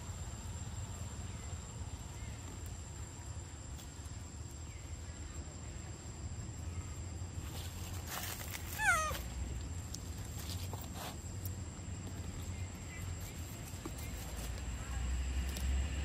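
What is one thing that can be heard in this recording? A monkey bites and chews into soft fruit.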